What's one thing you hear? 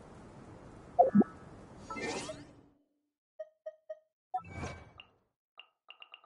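Soft menu clicks and chimes sound in quick succession.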